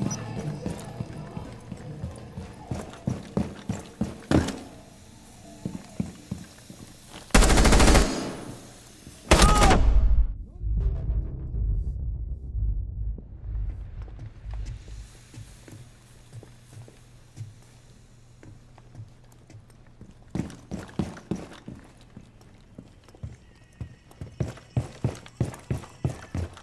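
Footsteps thud quickly on hard floors and stairs.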